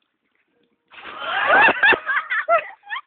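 Water splashes loudly as a boy jumps into a pool.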